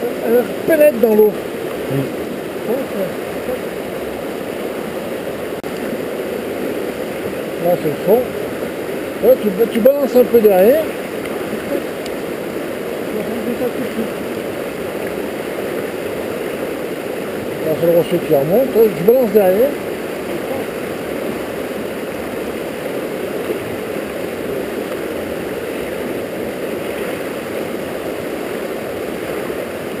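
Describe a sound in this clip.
A fast river rushes and churns nearby.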